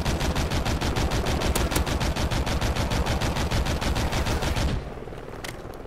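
A helicopter's heavy gun fires in a rapid, steady stream of shots.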